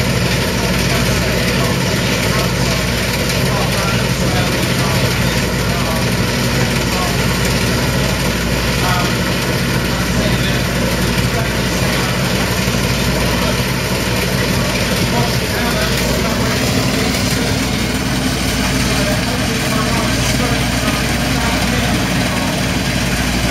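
An old diesel combine harvester engine runs as the machine drives slowly across grass.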